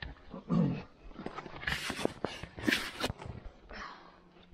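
Boots crunch in snow.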